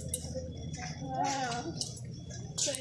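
A young girl talks nearby.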